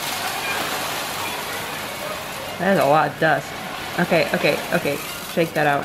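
Cat litter pours from a bag into a tray with a rushing hiss.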